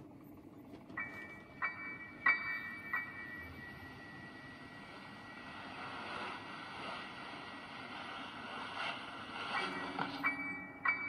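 A tablet speaker plays eerie game sounds with ringing high chimes.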